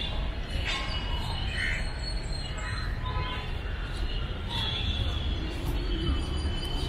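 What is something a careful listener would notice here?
Footsteps scuff on a paved path outdoors.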